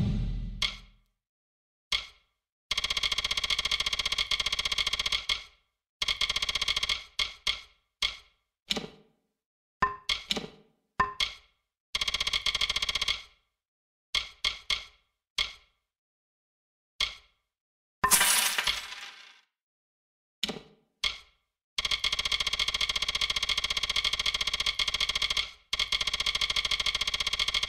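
Game menu ticks click rapidly in bursts as a list scrolls.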